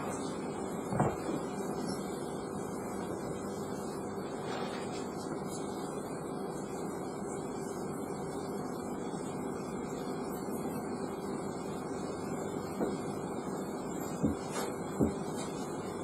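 A dancer's feet thump on a floor.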